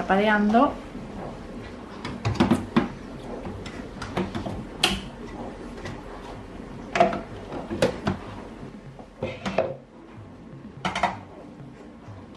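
Metal parts knock and clink against a coffee machine.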